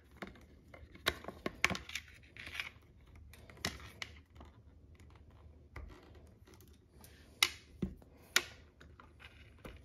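Plastic clips and cables click and rattle under a hand's handling.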